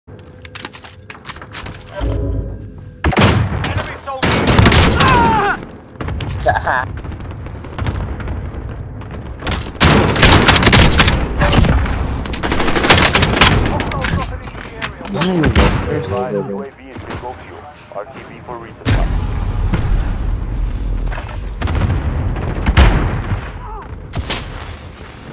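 Gunshots fire in rapid bursts at close range.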